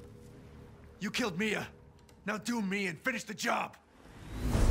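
A man speaks in a low voice nearby.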